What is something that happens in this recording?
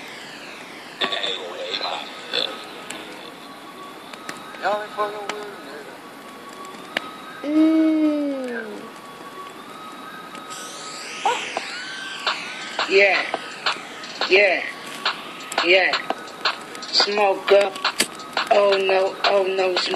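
A young man raps with animation, close by.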